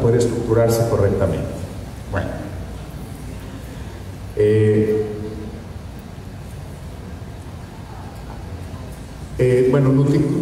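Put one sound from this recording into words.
A man speaks into a microphone over loudspeakers in a large echoing hall, in short bursts.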